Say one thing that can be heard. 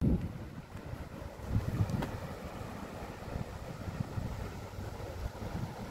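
A shallow stream ripples over stones.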